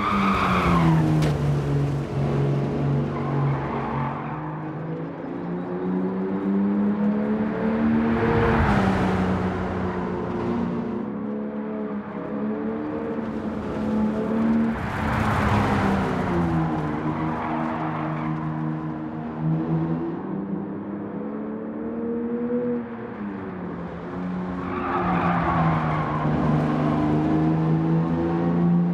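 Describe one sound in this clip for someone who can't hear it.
A racing car engine roars steadily, rising and falling in pitch as it shifts gears and takes corners.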